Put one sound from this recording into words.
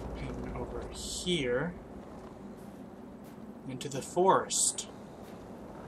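A young man speaks briefly into a close microphone, with sudden exclamations.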